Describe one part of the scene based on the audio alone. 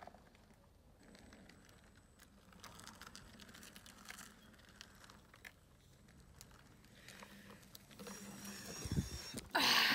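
Small wheels rumble and crackle over gravel.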